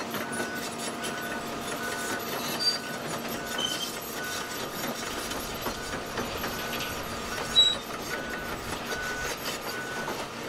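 A heavy excavator engine rumbles steadily nearby.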